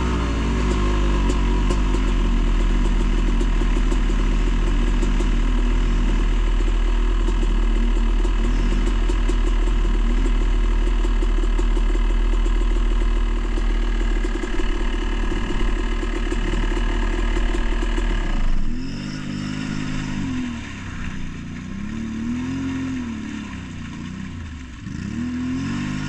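An all-terrain vehicle engine revs up and down repeatedly a short way off.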